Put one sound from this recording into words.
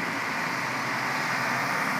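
A bus engine hums as it passes nearby.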